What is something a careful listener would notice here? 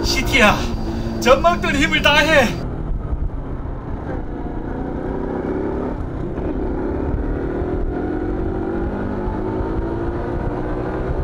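A motorcycle engine hums steadily and rises in pitch as the bike speeds up.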